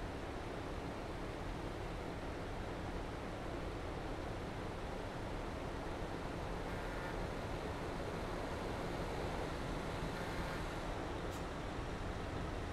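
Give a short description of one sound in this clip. A heavy truck engine rumbles steadily at a low idle.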